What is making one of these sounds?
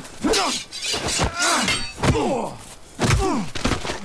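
A man shouts with effort.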